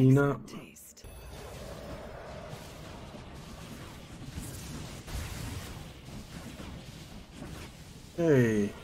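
Game creatures clash and strike each other in battle.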